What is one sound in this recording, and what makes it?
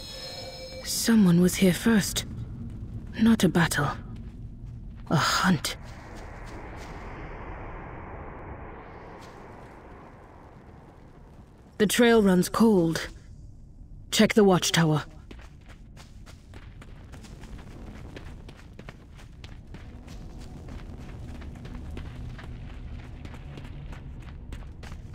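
Footsteps patter softly along a path.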